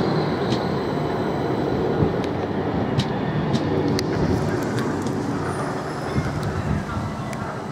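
A train rumbles along the tracks past a platform.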